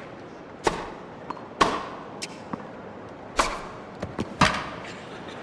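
A tennis ball is struck sharply with a racket, back and forth.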